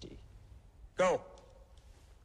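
A man shouts a short command sharply.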